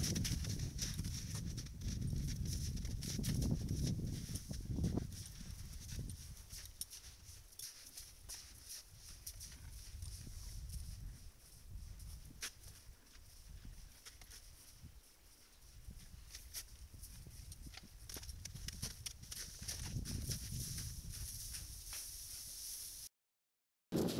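Hooves crunch through snow as horses walk.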